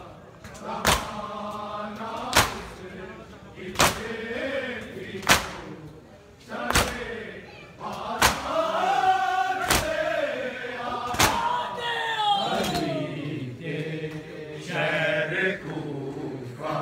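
A crowd of men chants a lament loudly in a rhythm.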